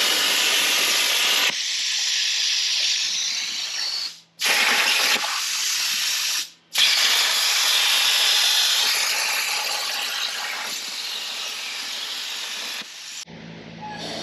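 A plasma cutter hisses loudly as it cuts through steel.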